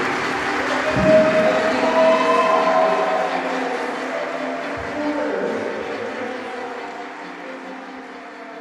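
A violin plays a slow melody.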